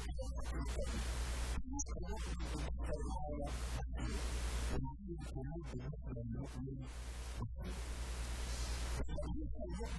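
A man preaches with passion into a microphone, heard through a loudspeaker in an echoing hall.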